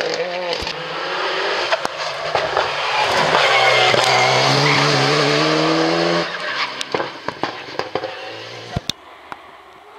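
Car exhausts pop and crackle.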